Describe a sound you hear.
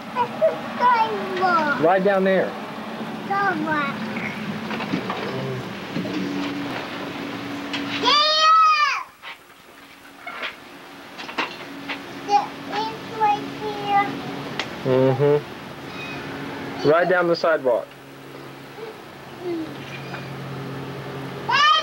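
A small child babbles and squeals close by.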